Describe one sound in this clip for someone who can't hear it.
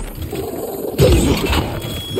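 A loud blast booms.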